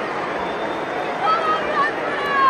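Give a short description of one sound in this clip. Fans whistle loudly from the stands.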